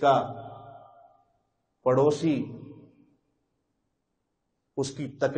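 A man speaks calmly in short phrases into a close microphone, with pauses between them.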